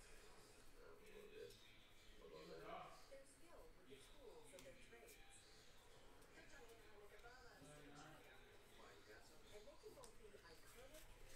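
Trading cards flick and rustle as they are shuffled by hand.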